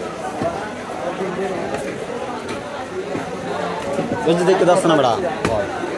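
A large knife knocks against a wooden chopping block.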